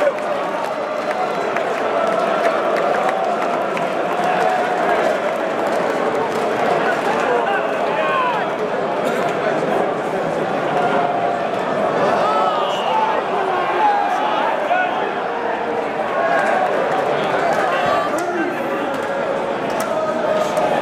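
A large stadium crowd chants and sings loudly, all around.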